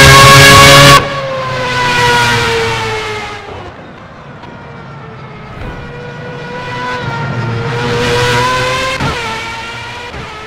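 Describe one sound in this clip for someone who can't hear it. A racing car engine drones from a distance, swelling and fading.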